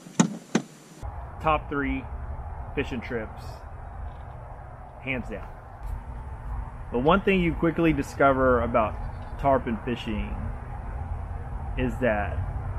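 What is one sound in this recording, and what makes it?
A man talks calmly and close by, outdoors in a light wind.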